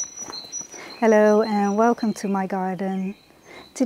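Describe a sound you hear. A young woman speaks calmly to the listener, close by.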